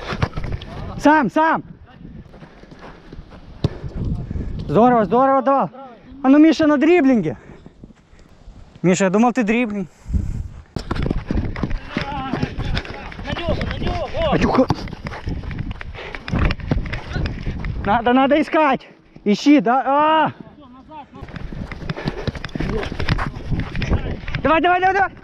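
Young men shout loudly across an outdoor pitch.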